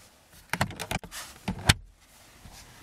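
A hand taps and knocks on a plastic glovebox lid.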